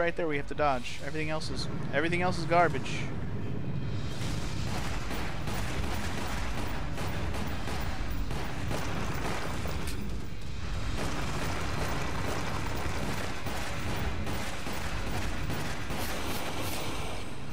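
Pistol shots fire again and again.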